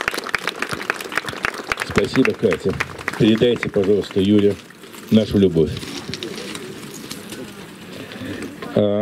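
An elderly man speaks calmly into a microphone, heard through a loudspeaker outdoors.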